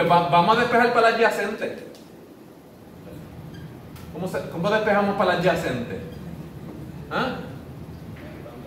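A man speaks calmly, explaining as if lecturing, in a room with a slight echo.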